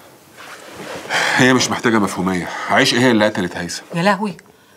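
A man speaks firmly and close by.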